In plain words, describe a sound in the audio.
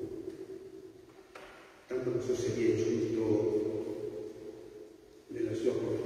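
An elderly man sings a chant through a microphone in a large echoing hall.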